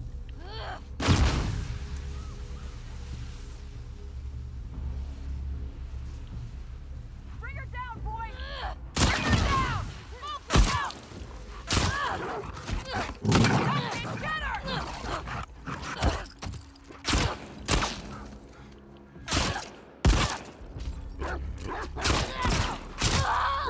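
Gunshots ring out loudly nearby.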